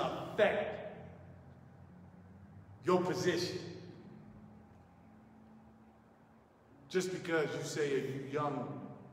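A man speaks through a microphone in short, loud bursts, echoing in a large hall.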